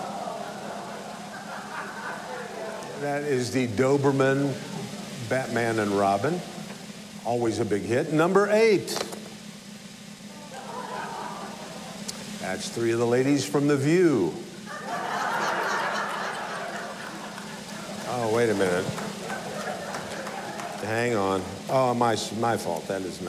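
An elderly man speaks with animation into a close microphone, reading out.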